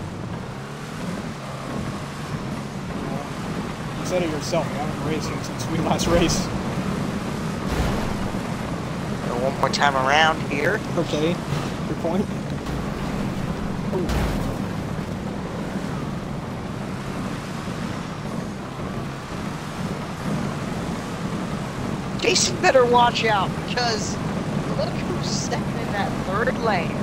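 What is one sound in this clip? Race car engines roar steadily as cars speed around a track.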